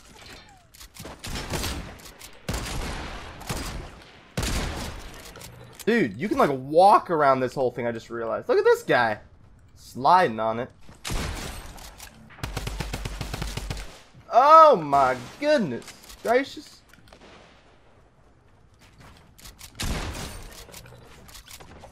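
Gunshots crack and pop in quick bursts.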